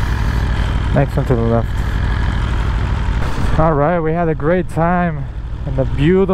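A motorcycle engine revs up and down several times.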